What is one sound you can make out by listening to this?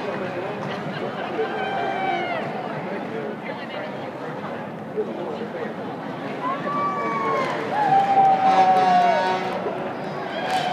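A crowd chatters and cheers along a street outdoors.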